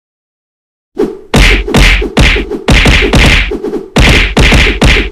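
Heavy punches thump quickly, one after another.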